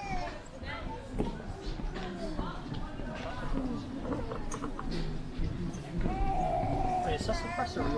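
Footsteps thud on a wooden boardwalk.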